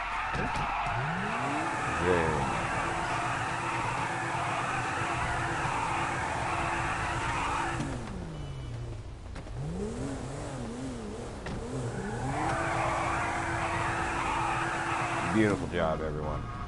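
A car engine revs loudly, rising and falling.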